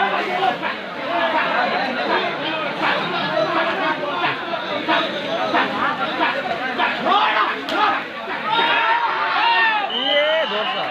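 Men shout to each other nearby.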